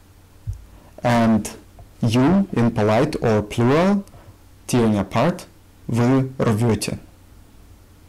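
A young man speaks calmly and clearly close to a microphone, with pauses.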